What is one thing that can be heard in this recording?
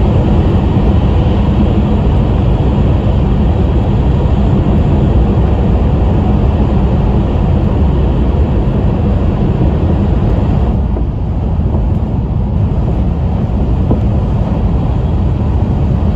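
A train rumbles steadily as it travels along the tracks.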